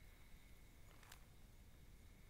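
A knife scrapes into dry ground.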